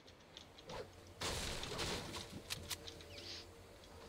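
A loud magical whoosh bursts nearby.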